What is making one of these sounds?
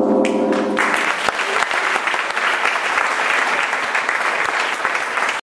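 An audience claps and cheers loudly in a large room.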